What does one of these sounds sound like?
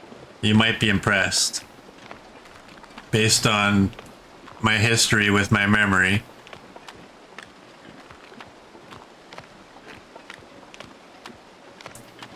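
Wind blows steadily across open snow.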